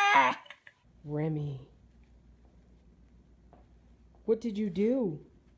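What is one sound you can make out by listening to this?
A dog gives short howls.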